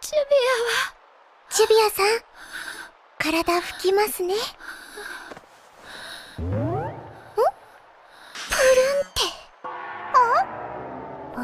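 A young girl speaks cheerfully and gently.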